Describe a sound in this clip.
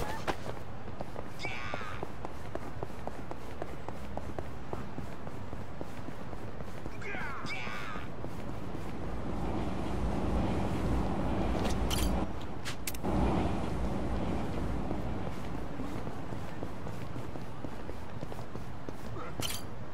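Quick footsteps run along pavement.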